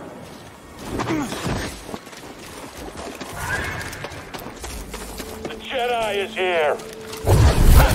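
Quick footsteps run over a rough dirt path.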